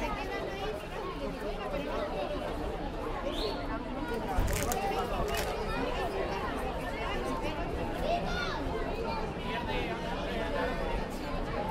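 A crowd of men, women and children chatters outdoors.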